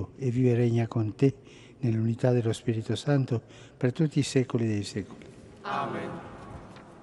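An elderly man chants slowly into a microphone in a large echoing hall.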